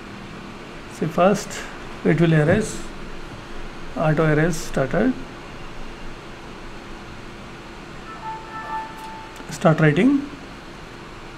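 A young man speaks calmly and in short bursts into a nearby microphone.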